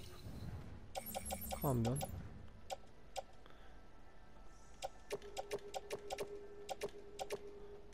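Short electronic clicks sound as menu items are selected, one after another.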